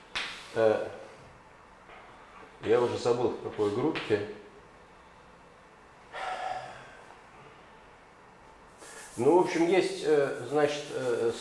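An older man speaks calmly in a room with a slight echo, pausing between phrases.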